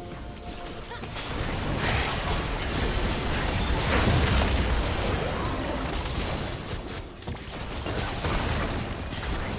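Weapons clash and strike repeatedly.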